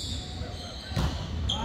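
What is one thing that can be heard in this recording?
A volleyball is struck with a hard slap that echoes through a large hall.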